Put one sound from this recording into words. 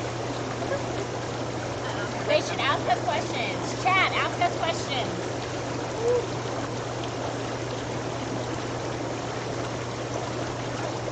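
Water bubbles and churns steadily in a hot tub.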